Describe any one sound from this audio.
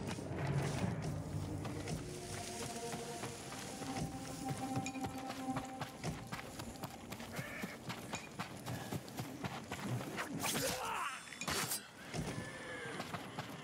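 Swords slash and strike in quick bursts.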